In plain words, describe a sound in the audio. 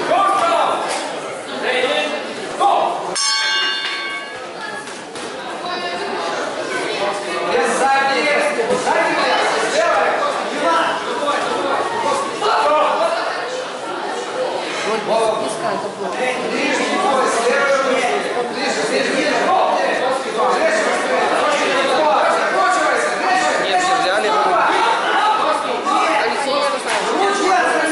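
A crowd of children and adults chatters and shouts in a large echoing hall.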